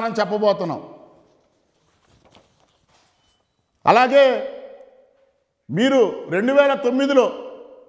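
A man speaks into a close microphone, reading out in a steady voice.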